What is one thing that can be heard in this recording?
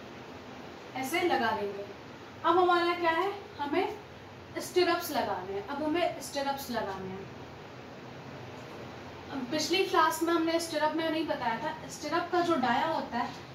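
A young woman speaks calmly and explains, close by.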